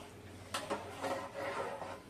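A ladle scrapes inside a metal pot.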